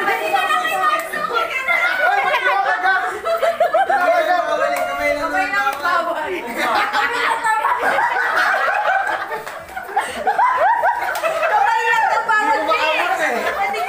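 Young men talk and cheer loudly nearby.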